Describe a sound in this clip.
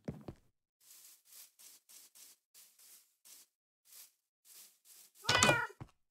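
Footsteps crunch softly on grass.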